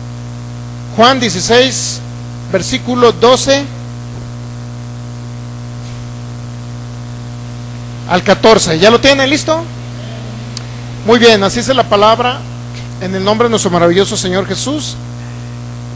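A man speaks into a microphone through loudspeakers, in short bursts with pauses.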